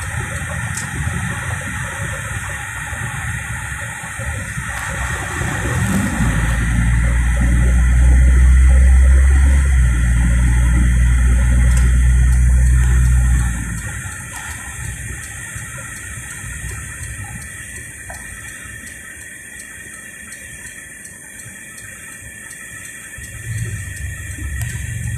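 Tyres roll and rumble on the road.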